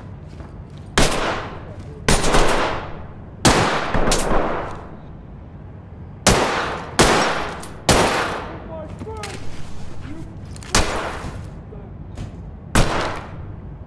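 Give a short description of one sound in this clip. A pistol fires loud shots that echo.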